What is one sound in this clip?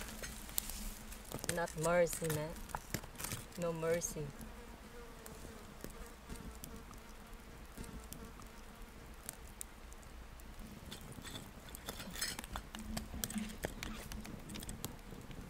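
A wood fire crackles close by.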